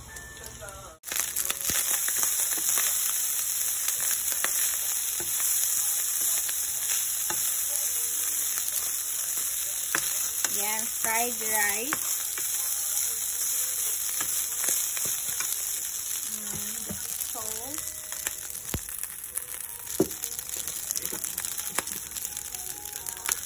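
Rice sizzles and crackles steadily in hot oil.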